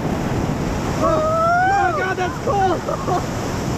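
A young woman whoops and shouts excitedly nearby.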